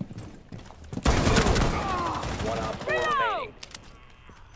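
A gun fires a loud, rapid burst close by.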